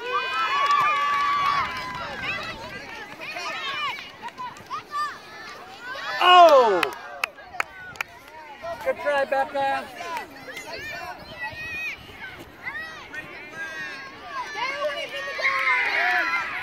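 A crowd of adults cheers and calls out from the side.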